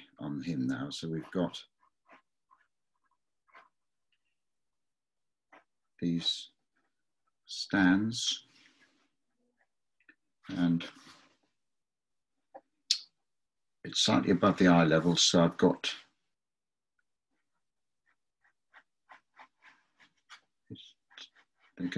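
A pen scratches lightly across paper.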